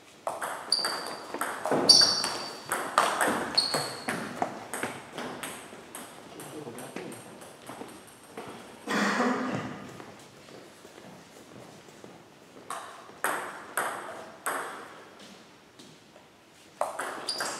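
A table tennis ball clicks back and forth off paddles and table in a large echoing hall.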